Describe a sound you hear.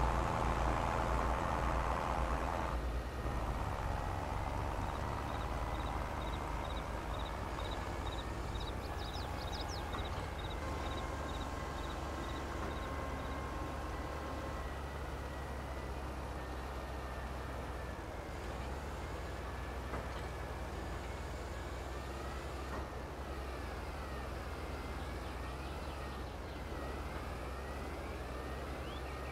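A tractor engine drones steadily as it drives along.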